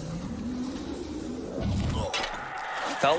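Flames roar and whoosh in a burst.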